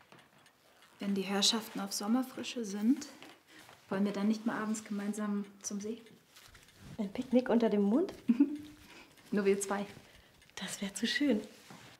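A young woman speaks softly and warmly up close.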